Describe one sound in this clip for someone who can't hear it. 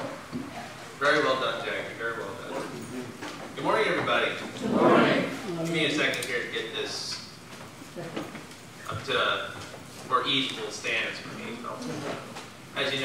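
A man speaks calmly into a microphone in an echoing hall.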